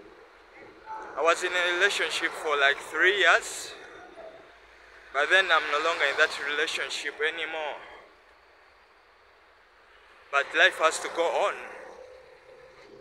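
A young man talks with animation close to a microphone, outdoors.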